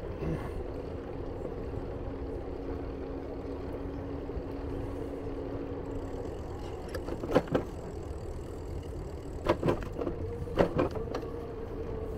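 Bicycle tyres roll steadily over asphalt.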